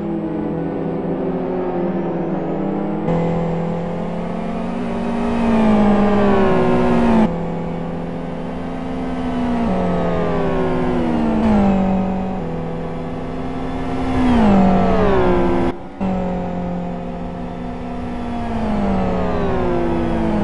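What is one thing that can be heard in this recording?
Racing car engines roar and whine as they pass, with pitch dropping on each gear change.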